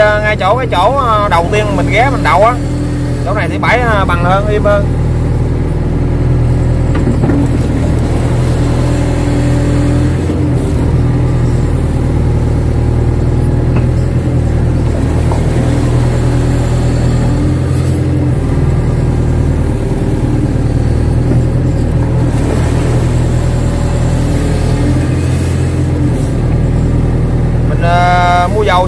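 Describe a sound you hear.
Water churns and splashes as an excavator arm stirs it.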